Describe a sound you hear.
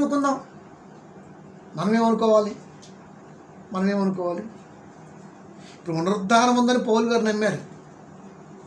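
A man sings slow, drawn-out phrases up close, with pauses between them.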